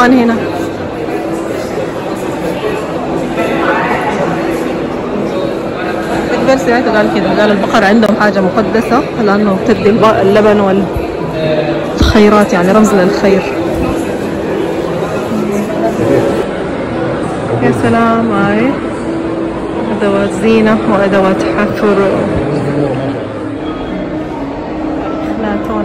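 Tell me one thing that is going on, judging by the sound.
A woman talks calmly close by.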